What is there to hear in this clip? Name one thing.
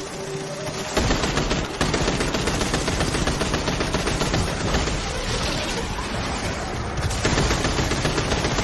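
Rapid gunfire rattles and echoes.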